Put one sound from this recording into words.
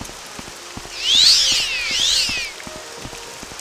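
A magic spell rings out with a bright shimmering chime.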